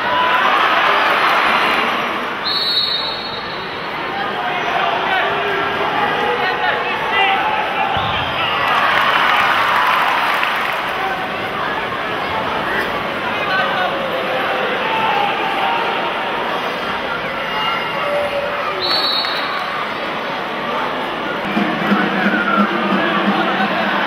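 Water splashes as swimmers thrash in a pool.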